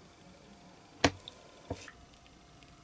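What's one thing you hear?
A small plastic toy clicks and knocks as it is handled.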